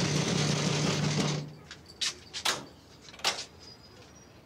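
A woman knocks on a wooden door.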